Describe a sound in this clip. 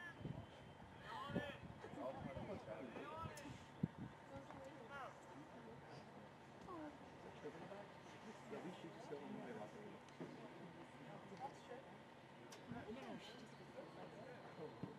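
Several people nearby talk and call out outdoors.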